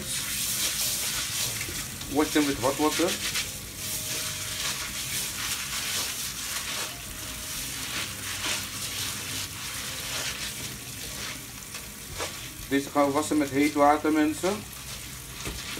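Hands stir wet grains in a colander.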